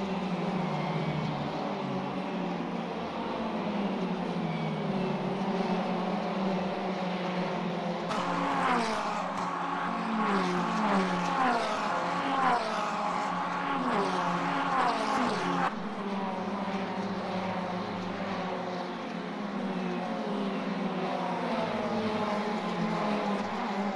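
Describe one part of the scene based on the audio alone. Racing car engines drone and whine steadily through loudspeakers.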